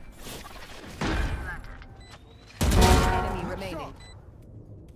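A young man talks loudly with excitement into a close microphone.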